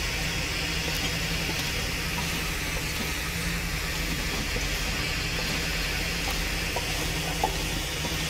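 A road flare hisses and sputters steadily close by.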